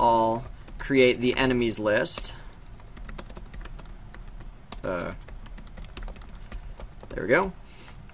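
Keys clatter quickly on a computer keyboard.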